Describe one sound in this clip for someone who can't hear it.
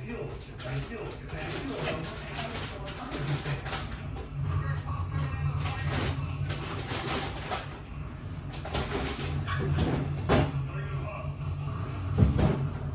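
Items clink and rustle inside a refrigerator.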